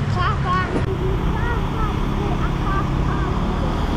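A motorbike engine hums past in the street.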